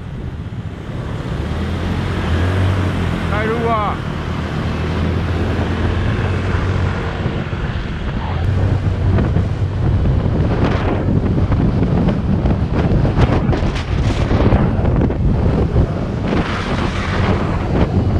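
Wind rushes past while riding.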